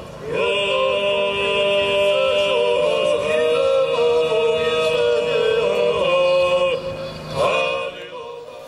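A choir of children sings together.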